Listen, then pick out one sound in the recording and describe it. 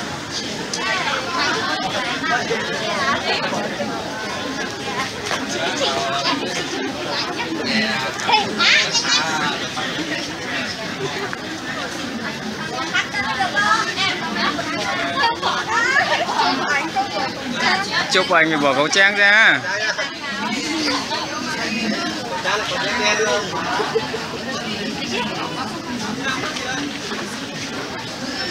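Several women chatter and laugh close by.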